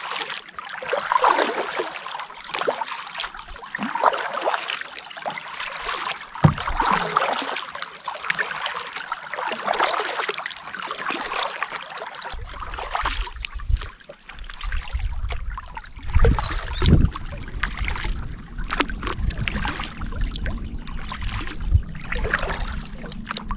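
A paddle splashes and drips in the water with steady strokes.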